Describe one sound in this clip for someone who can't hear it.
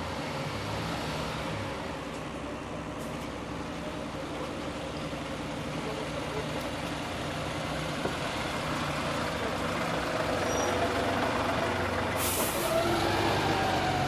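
A fire truck's diesel engine rumbles steadily close by as the truck rolls slowly forward.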